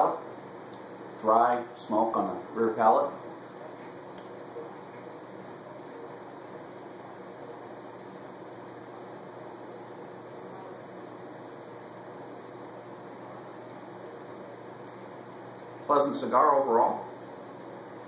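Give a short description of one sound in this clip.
A middle-aged man speaks calmly and closely into the microphone, in short bursts.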